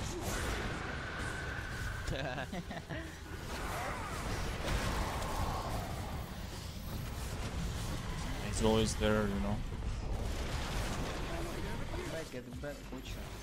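Spell effects crackle and burst in a fantasy battle.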